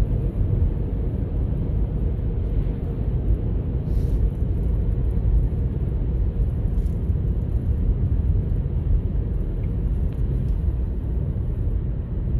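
A car's engine hums and its tyres rumble steadily on the road.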